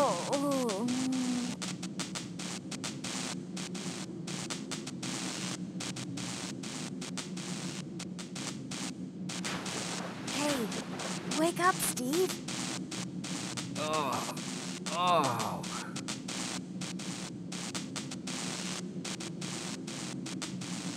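A man talks briefly into a close microphone.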